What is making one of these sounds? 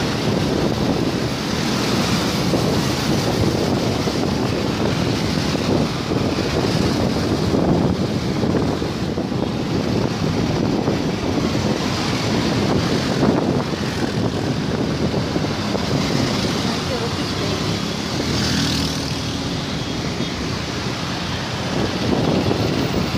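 Motorbikes and cars drive past on a road.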